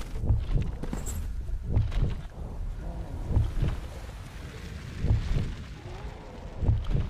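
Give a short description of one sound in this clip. A deep heartbeat thuds slowly and steadily.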